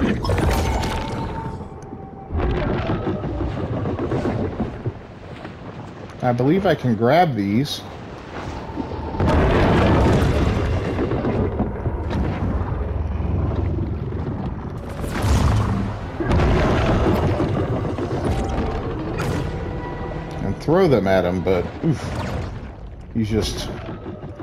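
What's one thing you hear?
A large sea creature swims with a deep underwater whoosh.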